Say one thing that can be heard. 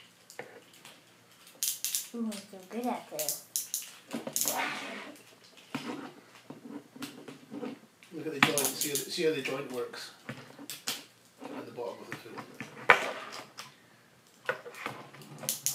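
Plastic toy bricks click and clatter.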